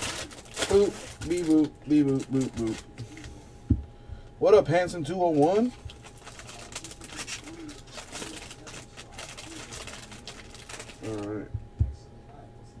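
Foil wrappers crinkle as packs are torn open.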